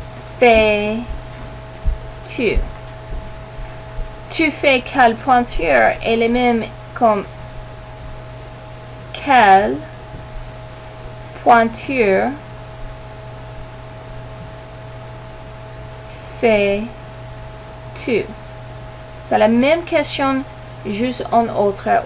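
A woman speaks calmly and clearly into a nearby microphone, with pauses between phrases.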